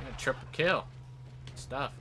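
An explosion booms in a video game.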